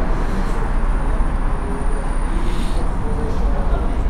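A man talks on a phone nearby.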